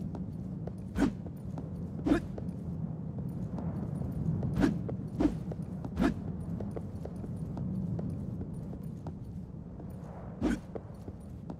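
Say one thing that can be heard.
A sword whooshes in short, sharp strikes.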